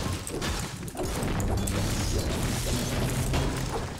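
A pickaxe strikes a wall with sharp knocks.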